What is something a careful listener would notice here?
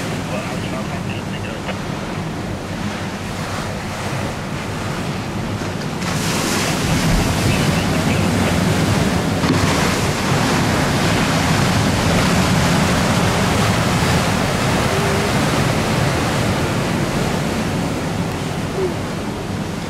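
Choppy water splashes and laps.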